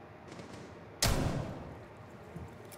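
A rifle fires a single loud shot that rings out.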